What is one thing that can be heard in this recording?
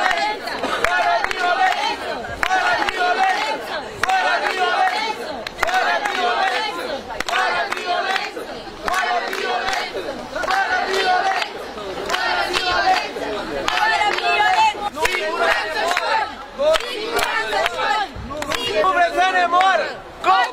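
A crowd of men and women chants loudly and rhythmically outdoors.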